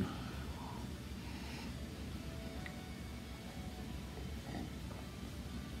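An elderly man sips a drink and swallows.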